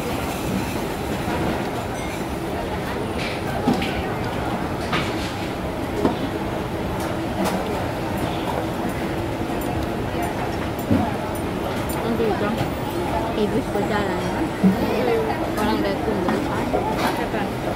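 A crowd murmurs steadily in a busy, echoing space.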